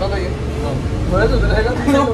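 A teenage boy speaks casually up close.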